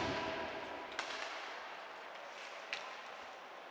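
A hockey puck is struck sharply by a stick.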